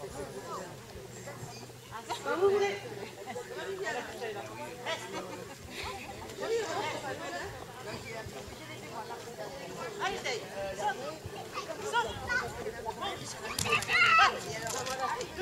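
A woman calls out commands loudly outdoors.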